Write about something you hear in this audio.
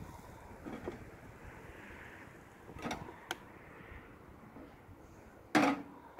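Metal clinks against a kettle lid.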